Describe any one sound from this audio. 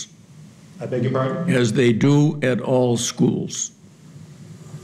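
A man speaks through a microphone.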